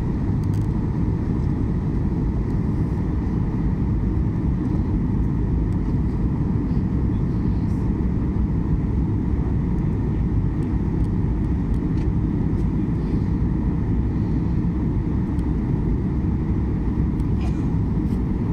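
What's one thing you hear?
A jet plane's engines drone with a steady, low roar.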